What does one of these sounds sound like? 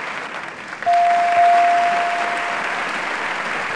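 An electronic chime rings out once and slowly fades.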